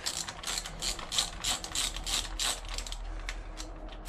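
A ratchet wrench clicks rapidly in short bursts.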